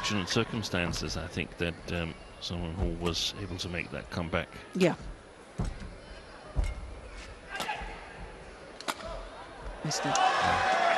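Rackets smack a shuttlecock back and forth in a rally.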